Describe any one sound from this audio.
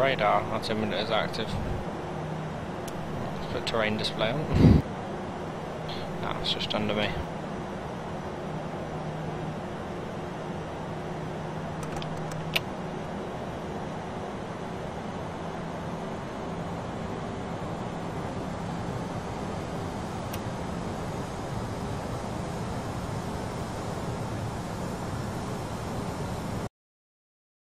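Jet engines hum steadily.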